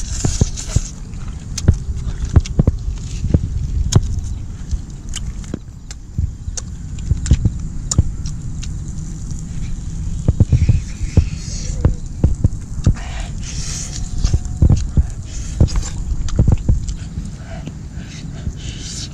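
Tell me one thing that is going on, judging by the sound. A man chews and crunches food close by.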